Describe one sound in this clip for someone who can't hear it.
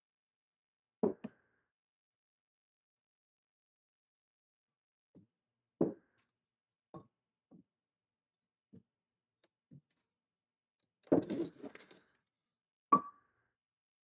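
Wooden boards knock and clatter against a workbench.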